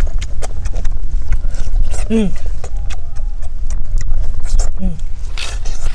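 A boy chews food close by, smacking his lips.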